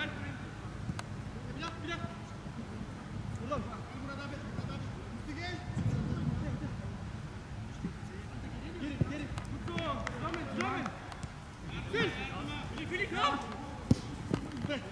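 A football thuds as a player kicks it.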